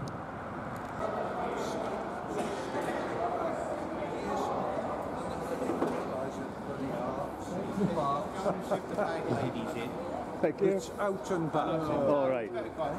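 Several older men chat together in a group nearby.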